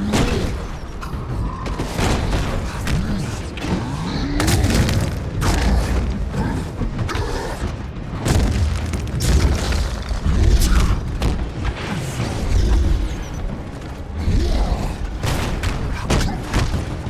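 Heavy blows land with loud thuds and crashes.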